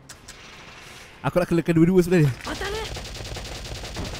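A rifle fires shots.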